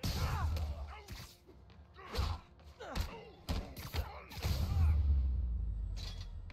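Punches and kicks land with heavy thuds and whooshes.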